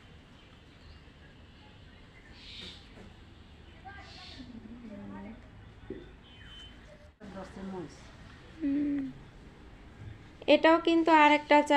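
Leaves rustle as a hand pushes through a plant.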